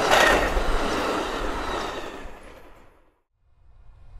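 A passenger train rumbles past close by and fades away.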